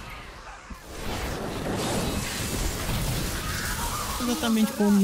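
A fiery beam roars with a steady rushing hiss.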